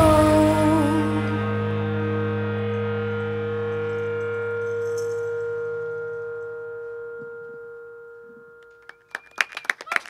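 A final sung and played note rings out and slowly fades.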